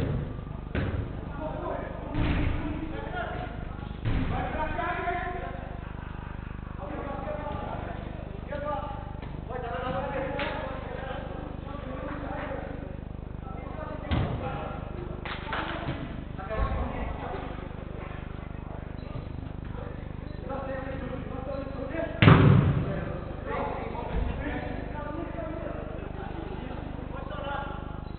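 Men shout and call out to each other across a large echoing indoor hall.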